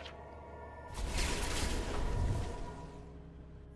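A magical whoosh and rumble bursts out of a video game.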